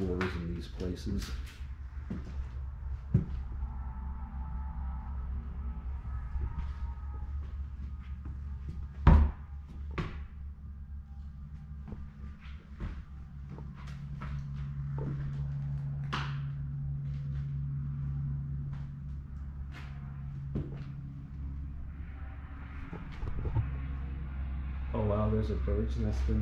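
Footsteps thud and creak on an old wooden floor.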